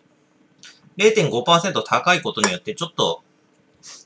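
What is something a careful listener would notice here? An aluminium beer can is set down on a table.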